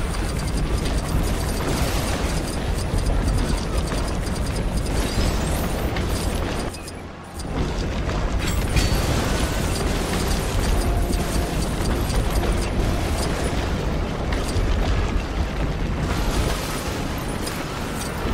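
A heavy ball crashes through toy bricks, sending them clattering.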